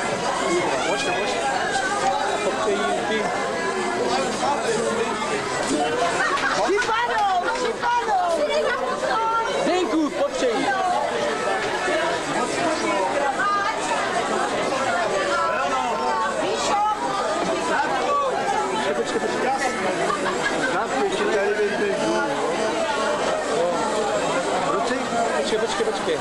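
A crowd of men and women talk and laugh loudly all around.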